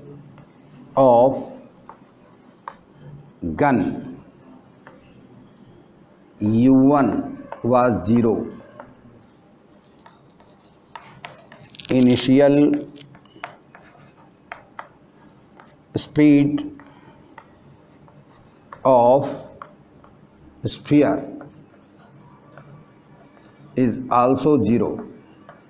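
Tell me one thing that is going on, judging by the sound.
An elderly man speaks calmly in short phrases, close by.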